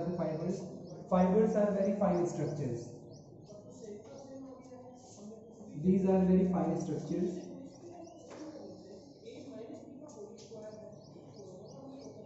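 A young man speaks calmly and clearly nearby.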